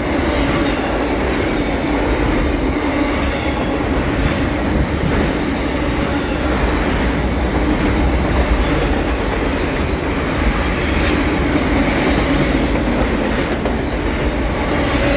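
A long freight train rumbles and clatters steadily past on the tracks nearby.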